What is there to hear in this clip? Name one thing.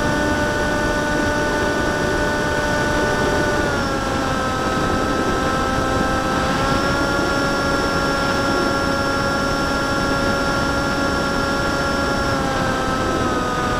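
Wind rushes past a model airplane in flight.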